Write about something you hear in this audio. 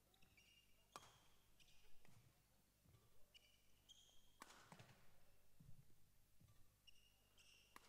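A racket strikes a shuttlecock with sharp pops.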